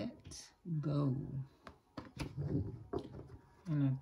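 A card is laid down on a cloth with a soft tap.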